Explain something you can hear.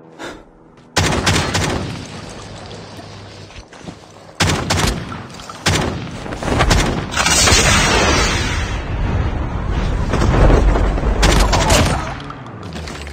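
Gunfire bursts in rapid shots.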